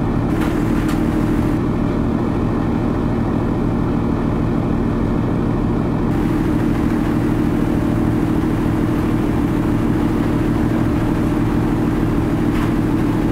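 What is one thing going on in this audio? A ferry's engines drone low and steady.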